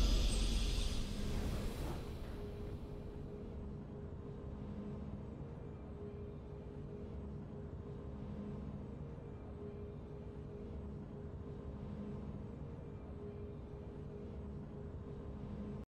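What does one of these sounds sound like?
A soft, calm tune plays steadily.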